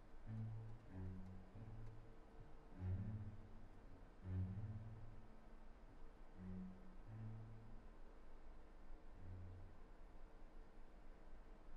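Violins and a viola play softly.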